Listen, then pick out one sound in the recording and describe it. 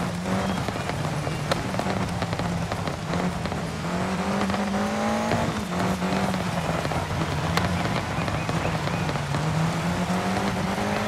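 Tyres skid and crunch on loose gravel.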